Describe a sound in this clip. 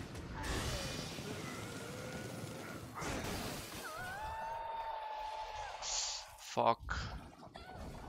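Blades clash and energy bursts roar in a fight.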